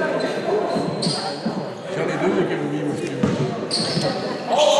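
Sneakers squeak sharply on the court.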